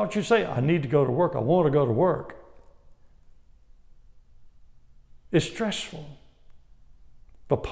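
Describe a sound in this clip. An older man speaks calmly and clearly, close to a microphone, with short pauses.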